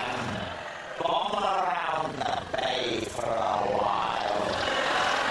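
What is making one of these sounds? A man speaks loudly with animation.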